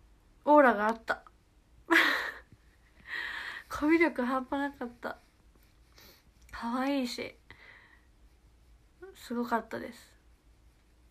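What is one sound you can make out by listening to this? A young woman talks cheerfully close to a phone microphone.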